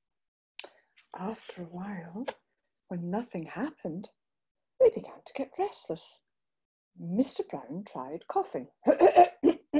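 A middle-aged woman speaks calmly and expressively over an online call.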